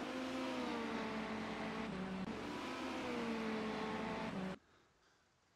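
A racing car engine drones and revs.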